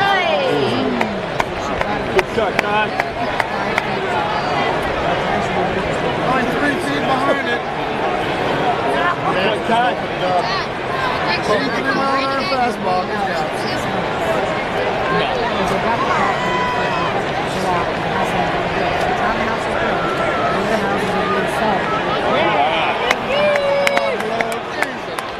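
A large stadium crowd murmurs and chatters.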